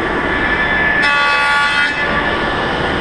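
A table saw blade cuts through wood.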